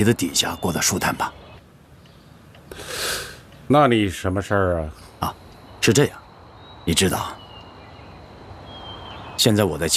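A man speaks calmly on the phone, close by.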